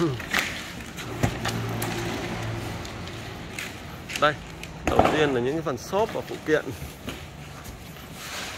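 Cardboard scrapes and rustles as a box is opened.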